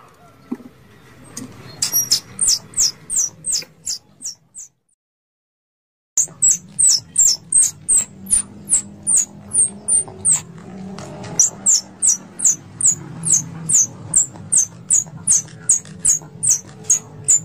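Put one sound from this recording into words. Wire mesh rattles as a squirrel climbs it.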